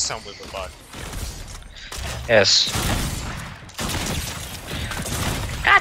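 Rapid gunfire crackles in a video game.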